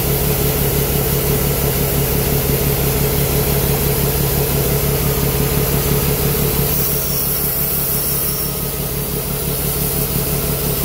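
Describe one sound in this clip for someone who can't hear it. A combine's unloading auger drones.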